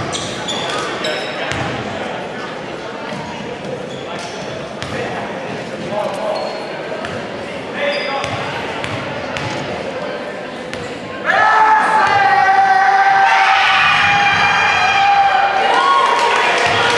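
A crowd murmurs and chatters in a large echoing gym.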